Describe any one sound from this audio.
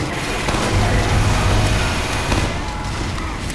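A heavy gun fires a rapid, roaring burst.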